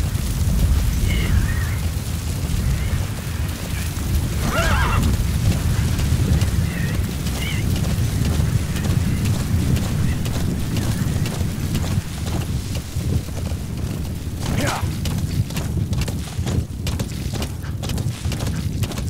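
Horse hooves pound steadily on dirt at a gallop.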